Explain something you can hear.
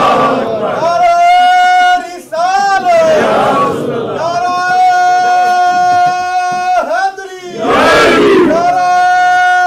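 An elderly man recites in a long, drawn-out, emotional chanting voice close to a microphone.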